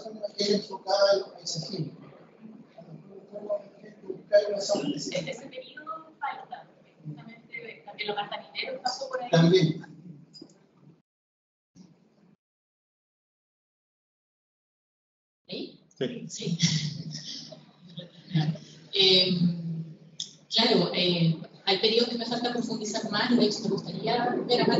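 A woman speaks calmly into a microphone in a large room.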